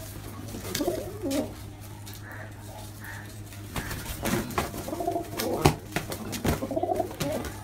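Pigeons coo loudly and repeatedly.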